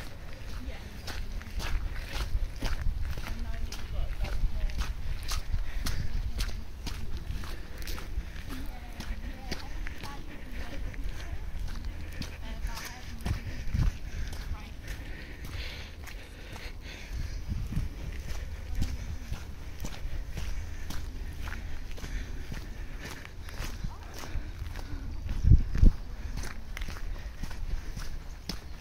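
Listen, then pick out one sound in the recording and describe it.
Footsteps crunch steadily on a wet gravel path.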